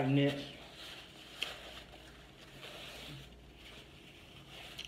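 A woman wipes her mouth with a paper napkin.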